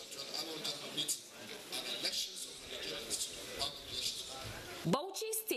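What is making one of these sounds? A man speaks formally into a microphone, heard through a loudspeaker system.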